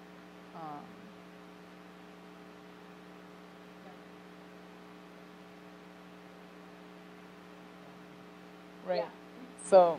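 A young woman speaks a few short words through a microphone.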